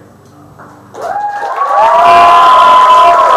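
A crowd cheers and whoops loudly close by.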